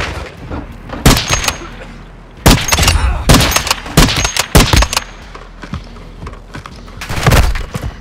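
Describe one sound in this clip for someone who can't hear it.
Rifle shots crack loudly, echoing outdoors.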